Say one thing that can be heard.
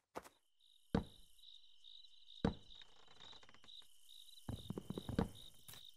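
Footsteps clatter on wooden boards.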